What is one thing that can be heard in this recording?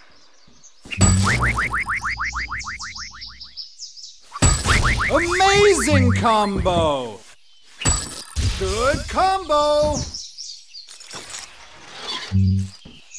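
Punching and thudding hits sound as cartoon figures fight.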